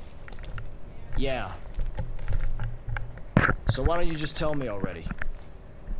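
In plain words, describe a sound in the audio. A younger man asks questions with rising irritation, close by.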